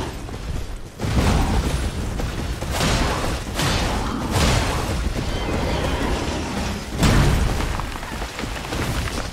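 Game sword clashes and thuds ring out in quick bursts.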